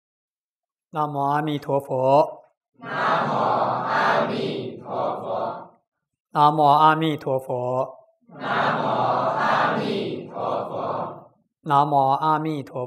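A man chants and speaks calmly, close to a microphone.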